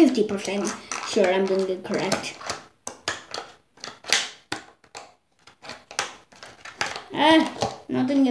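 A plastic tray clicks and creaks in someone's hands.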